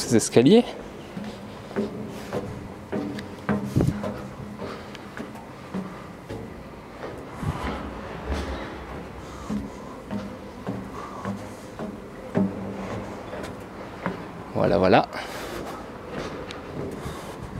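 Footsteps thud on metal stairs.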